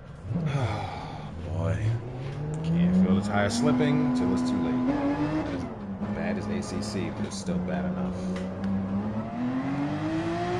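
A racing car engine revs hard and climbs through the gears.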